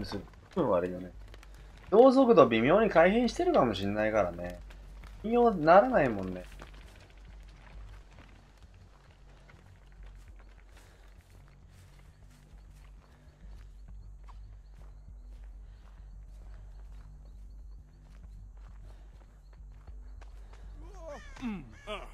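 Footsteps run and rustle through tall grass.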